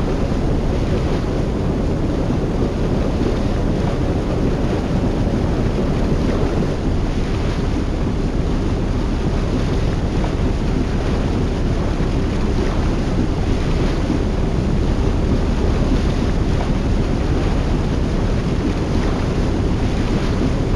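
Boat engines rumble steadily.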